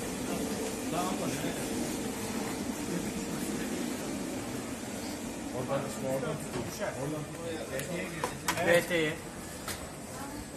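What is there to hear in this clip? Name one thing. Several men talk urgently close by.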